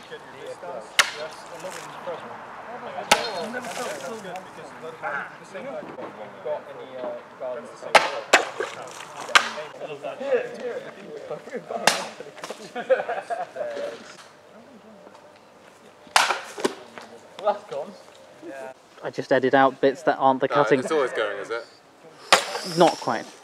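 A blade swishes and strikes a bottle with a sharp smack.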